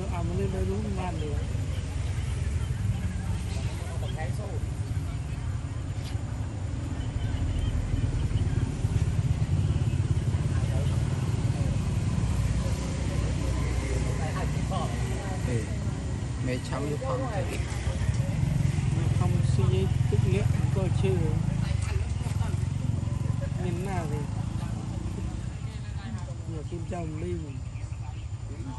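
A baby monkey squeaks and chirps softly.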